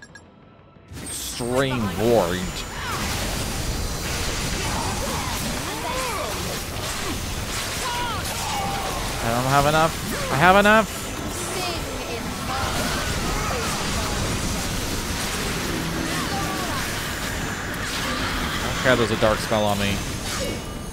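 Magic blasts boom and crackle in a fierce battle.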